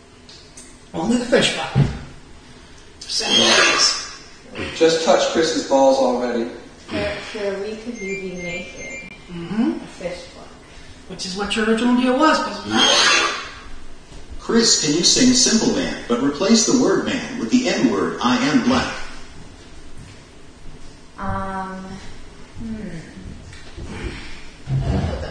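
A man talks loudly nearby, heard through a room microphone.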